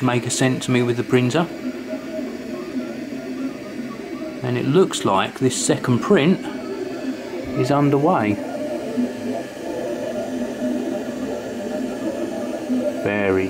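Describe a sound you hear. A 3D printer's stepper motors sing in quick rising and falling tones.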